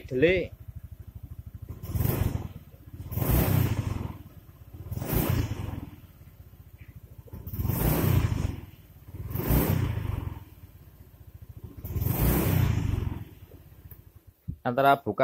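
A motorbike engine revs up and drops back again and again.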